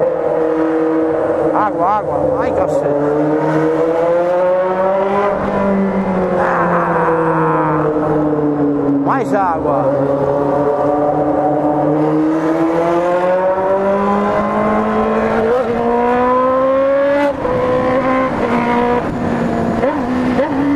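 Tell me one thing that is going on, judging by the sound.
A motorcycle engine drones steadily, its pitch rising and falling as it speeds up and slows down.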